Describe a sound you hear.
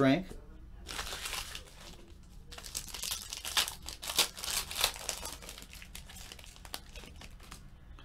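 A foil pack crinkles and tears as hands open it.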